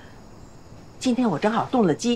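An elderly woman talks warmly and with animation.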